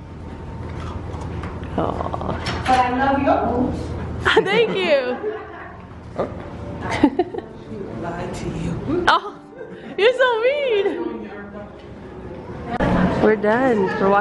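Women talk and laugh nearby.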